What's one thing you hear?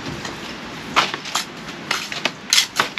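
A brick knocks against a wall as a bricklayer sets it.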